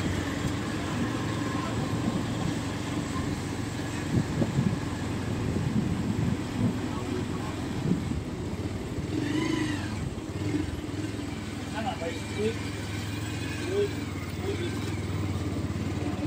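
A small motor vehicle engine hums and rattles steadily nearby.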